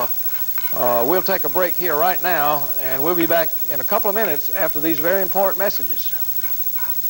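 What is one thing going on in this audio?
A man talks calmly and clearly, as if to an audience, close to a microphone.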